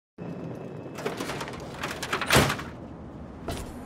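A heavy metal door creaks open.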